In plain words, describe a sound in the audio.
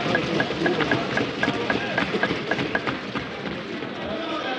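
Many people thump rapidly on desks in a large hall.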